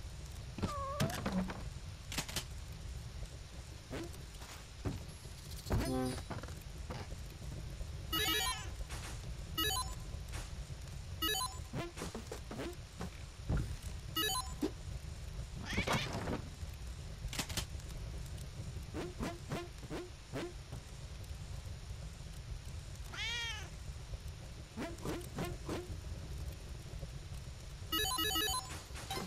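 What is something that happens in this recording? Bright video game sound effects chime and blip in quick bursts.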